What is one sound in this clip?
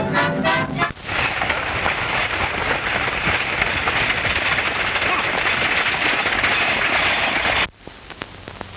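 Horses' hooves pound at a gallop on a dirt road.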